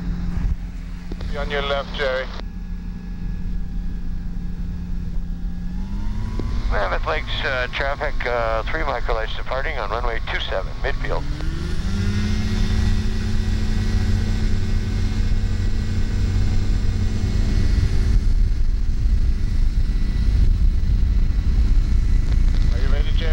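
A small aircraft engine drones steadily and revs higher twice.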